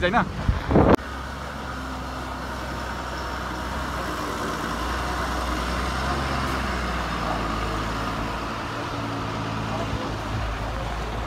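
A bus engine rumbles low and strains as the bus crawls over rocks.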